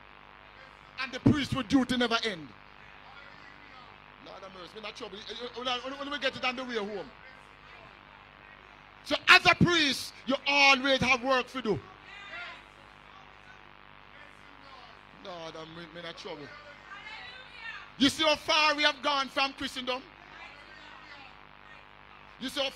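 An elderly man preaches with animation into a microphone, in bursts with pauses.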